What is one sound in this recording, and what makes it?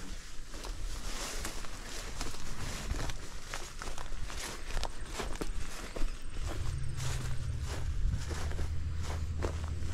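Tall weeds rustle and brush as someone pushes through them.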